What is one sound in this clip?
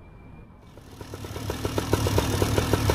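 A small propeller engine runs close by.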